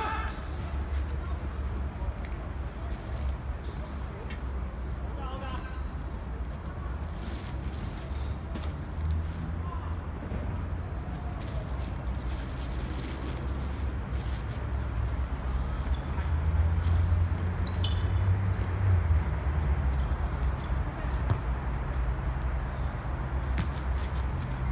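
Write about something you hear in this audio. Distant players shout now and then on an open field.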